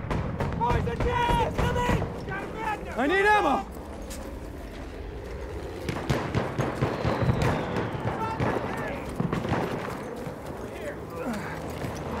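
Gunshots crack and explosions thud across a battlefield.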